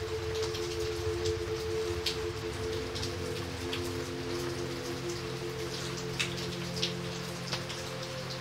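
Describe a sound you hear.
Heavy rain splashes steadily onto a puddle.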